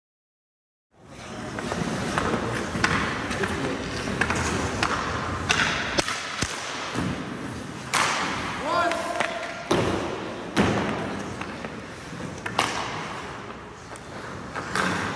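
Hockey skates carve and scrape on ice in an echoing rink.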